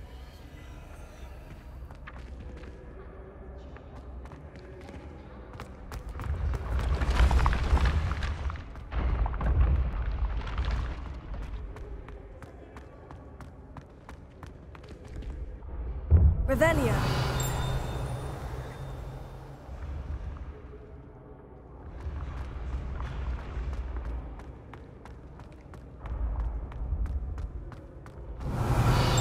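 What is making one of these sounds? Footsteps patter quickly on stone stairs.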